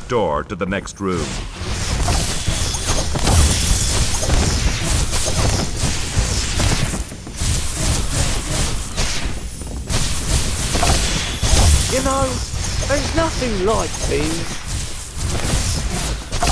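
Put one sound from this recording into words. A magic spell crackles and whooshes in bursts.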